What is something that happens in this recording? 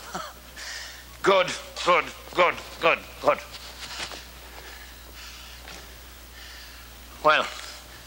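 A coat rustles as an elderly man handles it.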